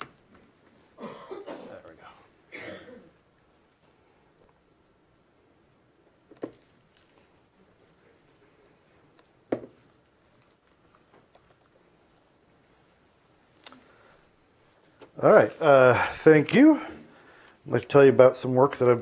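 A young man speaks calmly through a microphone in a large room.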